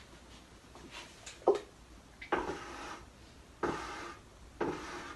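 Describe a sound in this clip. Objects knock and clatter nearby.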